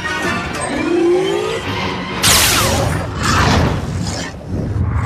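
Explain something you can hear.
Laser swords hum and swoosh as they swing.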